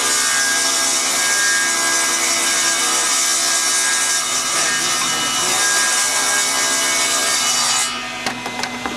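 A table saw screams as it cuts through wood.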